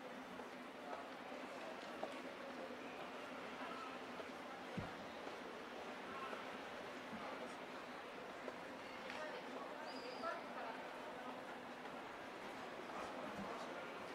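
Voices of people chatter faintly outdoors in a street.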